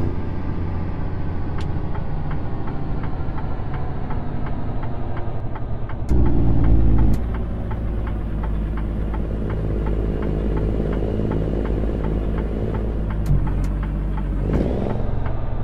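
A truck's turn signal ticks in an even rhythm.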